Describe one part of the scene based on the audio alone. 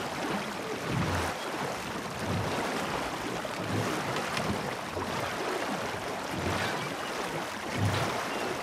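Oars dip and splash in the water in a steady rhythm.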